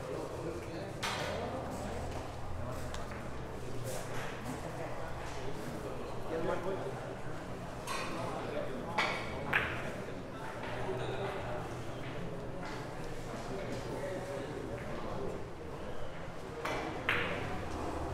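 A cue tip taps a ball.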